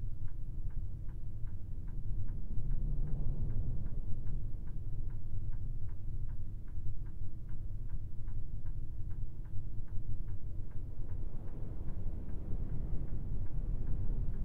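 A truck engine rumbles low and steady.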